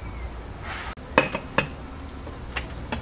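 A knife cuts into a cake.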